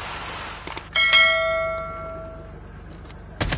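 A chime rings out once.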